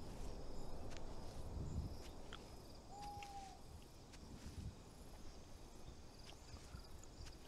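An animal's paws rustle softly on leaf litter.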